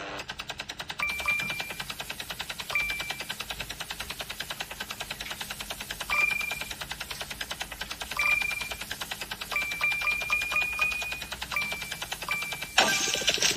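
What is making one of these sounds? Short bright chimes ring out as gems are collected.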